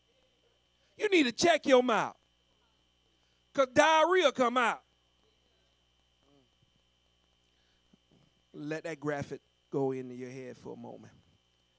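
A man preaches with animation through a microphone, in bursts with pauses.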